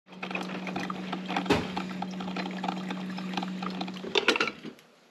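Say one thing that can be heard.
A coffee maker hisses and gurgles as it brews.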